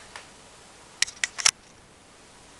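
A small bottle knocks and clicks as a hand handles it.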